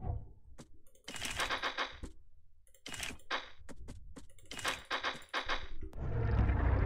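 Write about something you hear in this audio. Short clicks tick one after another.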